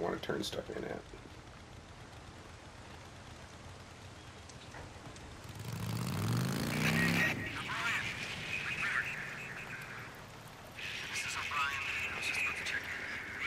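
A motorcycle engine hums and revs up as it rides along.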